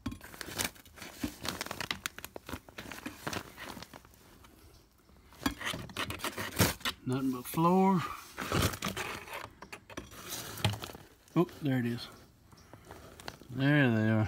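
A hand rustles and scrapes against fibreglass insulation and plastic siding close up.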